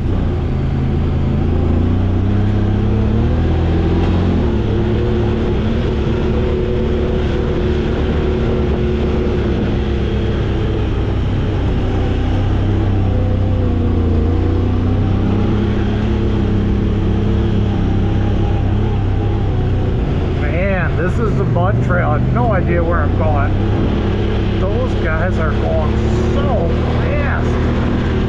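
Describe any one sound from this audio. Tyres crunch over dirt and dry leaves.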